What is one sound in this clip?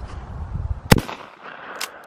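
A shotgun fires a single loud shot.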